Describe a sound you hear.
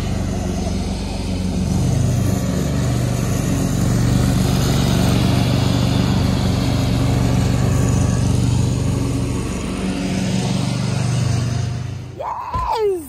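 A riding lawn mower engine drones steadily nearby, outdoors.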